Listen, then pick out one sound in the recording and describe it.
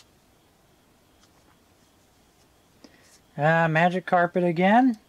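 Stiff cards softly rustle and tap as a hand shuffles through them.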